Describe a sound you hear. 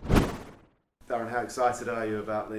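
A man speaks calmly and close to a microphone.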